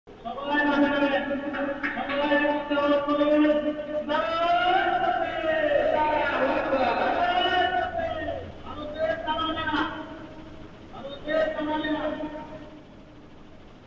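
A group of men chant loudly and rhythmically.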